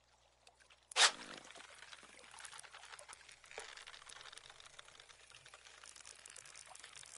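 A fishing reel clicks and whirs as the line is reeled in.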